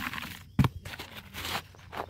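A plastic scoop scrapes through loose soil.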